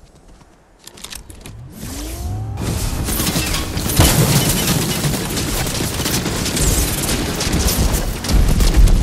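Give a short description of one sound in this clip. A car engine revs and roars at speed.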